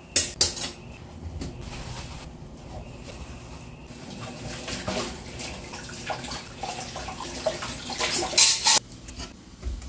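Dishes clatter and clink in a sink.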